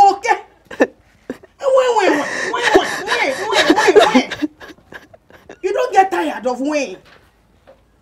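A middle-aged woman speaks loudly and emotionally close by.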